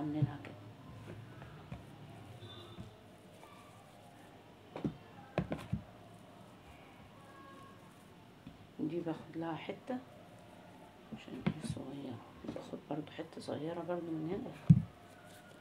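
Hands knead and pat soft dough.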